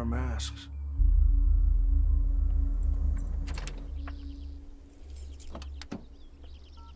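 A car engine rumbles low.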